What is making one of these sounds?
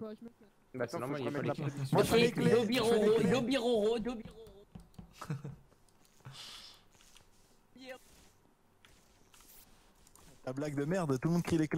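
A boy talks with animation into a close microphone.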